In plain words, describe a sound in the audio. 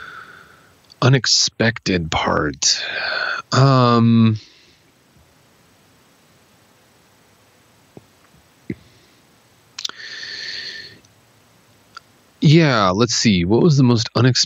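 A man speaks with animation, close to a microphone, in short bursts.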